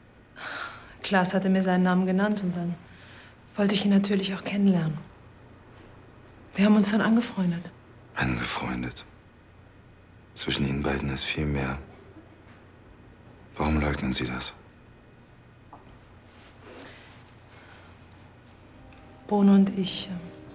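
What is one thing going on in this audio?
A woman speaks calmly, close by.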